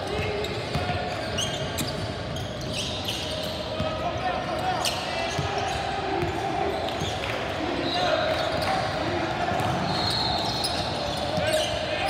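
A basketball thuds as it bounces on the court.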